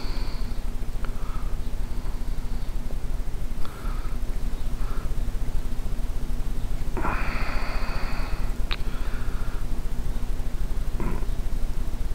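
Small plastic parts click and rattle between fingers.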